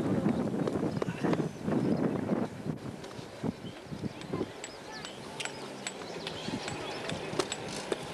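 A crowd of men talk and call out outdoors.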